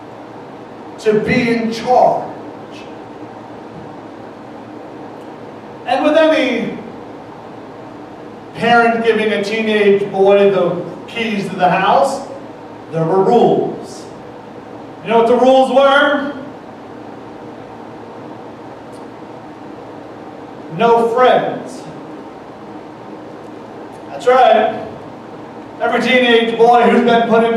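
A man speaks calmly through a headset microphone, with pauses between phrases.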